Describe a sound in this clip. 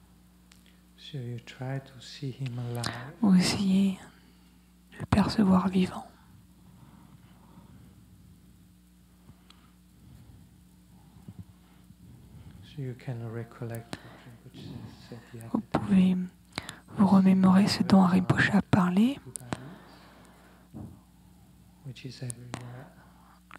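A middle-aged man speaks calmly and slowly into a microphone, with long pauses.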